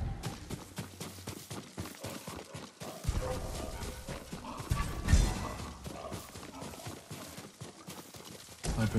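Quick footsteps rustle through grass and dry leaves.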